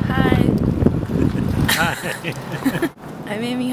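A young woman laughs close to the microphone.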